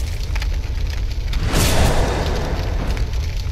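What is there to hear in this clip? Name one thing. Heavy armour clanks with footsteps.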